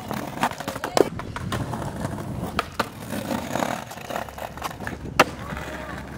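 Skateboard wheels roll and grind along a concrete ledge.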